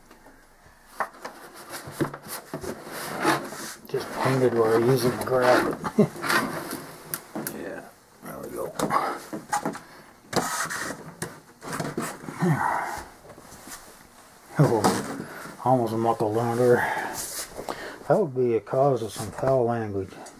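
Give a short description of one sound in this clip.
An adult man talks calmly close by.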